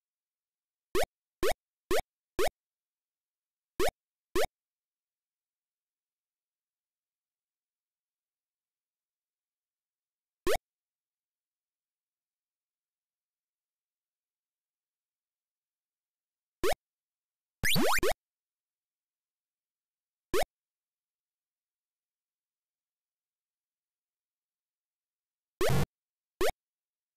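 Short rising electronic beeps from a retro video game chirp now and then.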